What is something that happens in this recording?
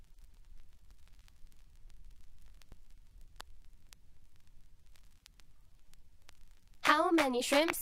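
Soft clicks and pops crackle from a spinning vinyl record.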